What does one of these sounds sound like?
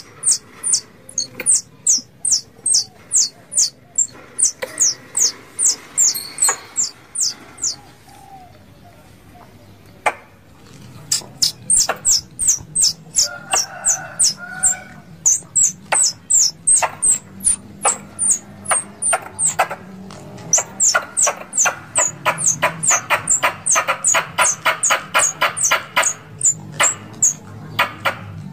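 A small squirrel chirps in rapid, shrill bursts close by.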